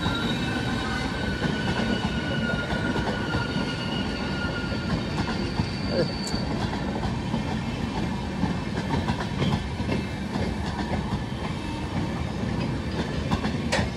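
A passenger train rumbles past close by with a loud, steady roar.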